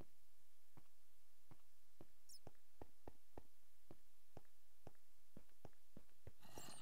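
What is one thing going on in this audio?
Footsteps tap steadily on stone.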